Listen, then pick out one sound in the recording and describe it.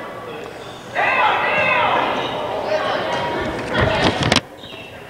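A crowd of spectators cheers and claps.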